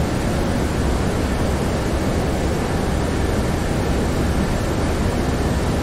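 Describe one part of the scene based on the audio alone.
Jet engines roar steadily, heard from inside a cockpit.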